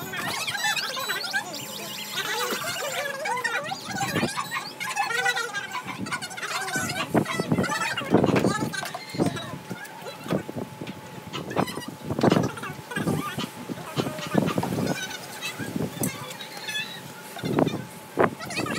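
Children and adults chatter nearby around a meal.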